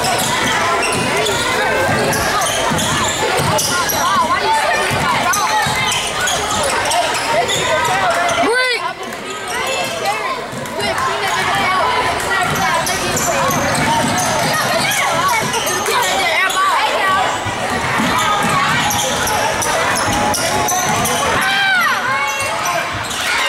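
A crowd of spectators cheers and shouts throughout in an echoing gym.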